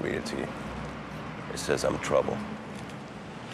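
A young man speaks tensely nearby.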